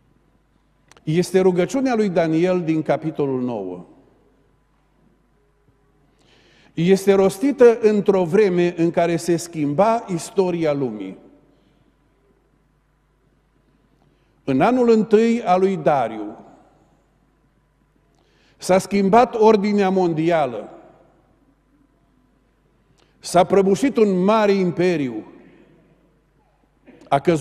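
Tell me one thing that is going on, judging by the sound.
A middle-aged man speaks calmly through a microphone in short phrases with pauses.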